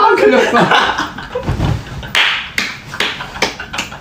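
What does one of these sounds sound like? Young men clap their hands.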